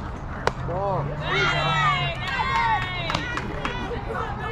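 Players shout and cheer across an open field.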